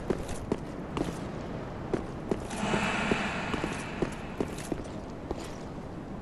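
Armoured footsteps run quickly over stone.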